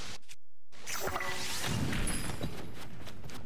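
A fiery blast bursts with a loud boom.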